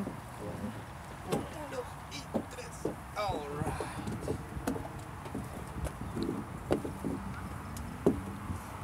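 Hands and knees knock softly on a hollow plastic tube.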